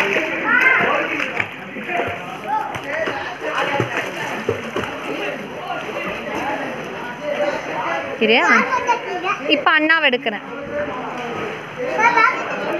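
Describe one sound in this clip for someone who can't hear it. A swimmer splashes through water with steady strokes.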